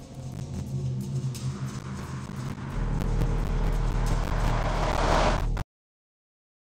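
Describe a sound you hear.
A low, humming drone swells louder and louder, then cuts off.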